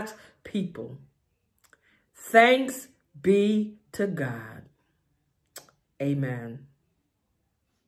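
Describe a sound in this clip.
An elderly woman speaks calmly and warmly, close to a microphone, in short phrases with pauses.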